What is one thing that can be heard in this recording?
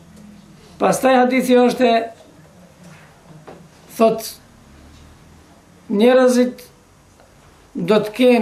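A middle-aged man speaks close by in short, calm bursts with pauses.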